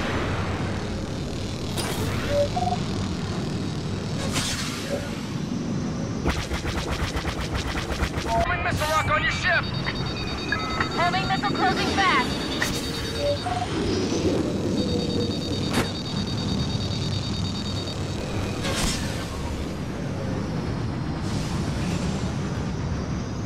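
A starfighter's engines roar steadily.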